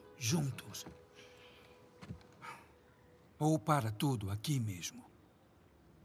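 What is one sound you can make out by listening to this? A man speaks tensely and close by.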